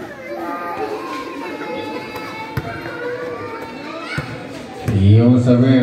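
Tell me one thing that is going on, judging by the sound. Girls shout and chatter while they play.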